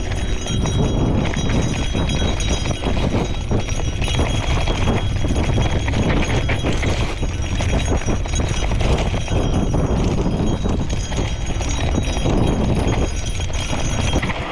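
Bicycle tyres rumble and rattle over a bumpy dirt trail.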